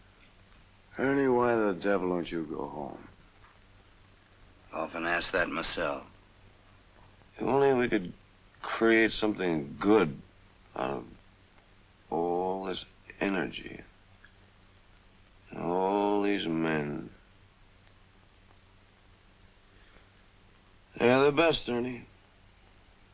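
A young man speaks quietly and wearily, close by.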